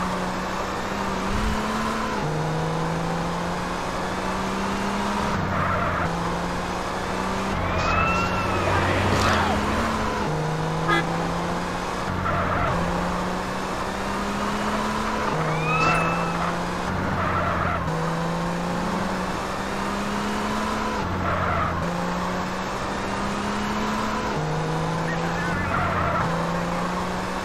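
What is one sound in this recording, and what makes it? A car engine hums and revs steadily, shifting up through gears.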